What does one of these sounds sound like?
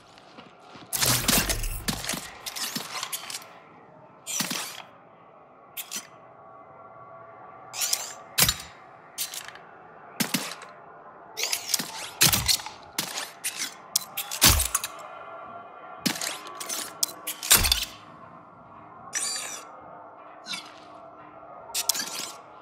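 Short mechanical whooshes and clicks sound as droid parts swap into place.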